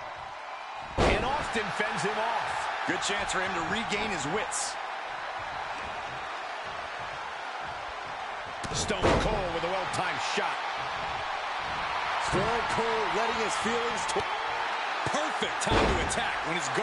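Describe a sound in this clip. A wrestler's body slams hard onto the ring mat with a loud thud.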